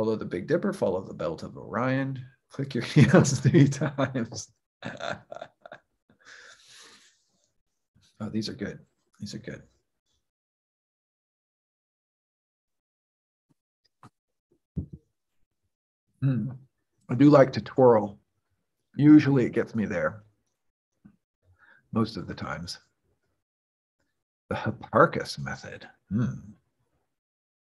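A young man speaks calmly with pauses over an online call.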